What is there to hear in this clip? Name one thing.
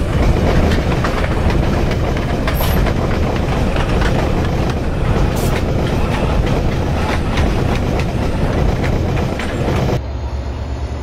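Train coaches rattle and clatter over the rails close by.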